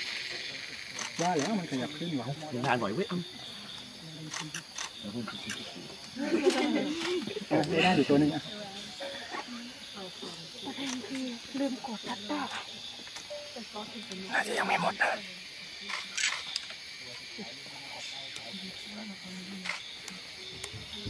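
Men and women talk quietly some distance away.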